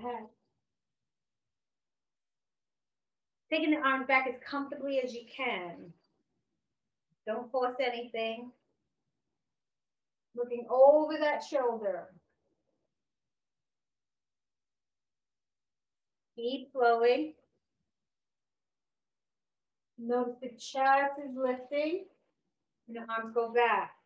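A woman speaks calmly and clearly, close to a microphone, in short phrases with pauses.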